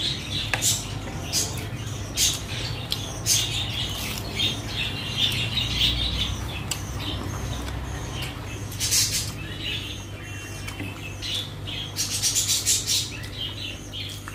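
Fingers squish and mix rice on a plate.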